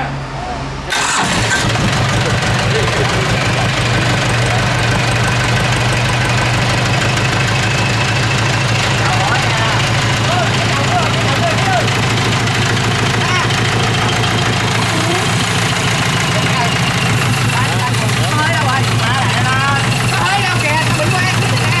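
A diesel engine starts and runs with a loud, steady clatter.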